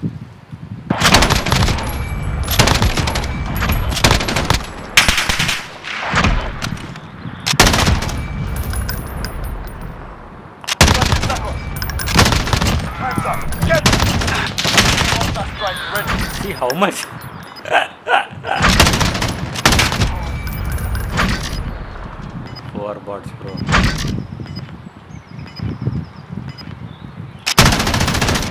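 Gunshots fire in rapid bursts and echo.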